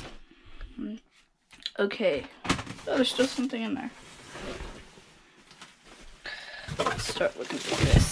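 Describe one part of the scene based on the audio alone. Cardboard boxes rustle and scrape as they are handled.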